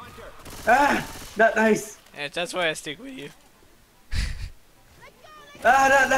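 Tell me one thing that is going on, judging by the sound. A gun fires several loud shots.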